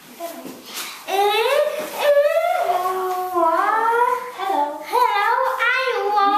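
A young boy speaks loudly and playfully close by.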